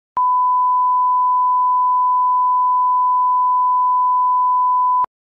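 A steady, high-pitched test tone sounds without a break.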